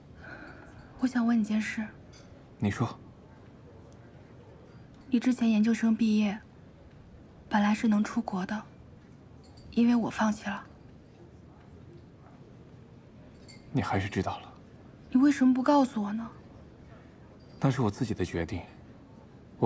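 A young woman speaks quietly and earnestly nearby.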